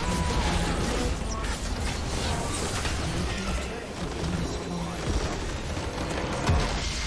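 Game spell effects crackle and blast during a fight.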